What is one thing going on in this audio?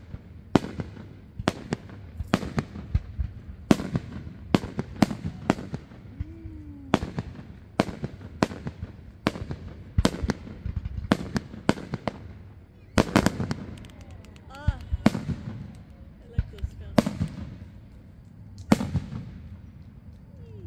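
Fireworks explode with loud booms and sharp bangs.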